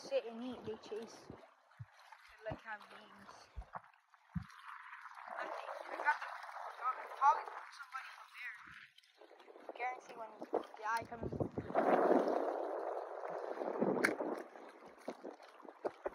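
Shallow water laps gently at the shore.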